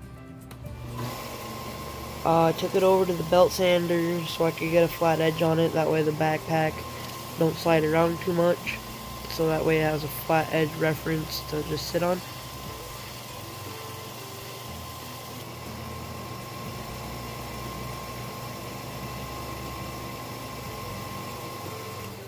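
A belt sander runs with a steady whir.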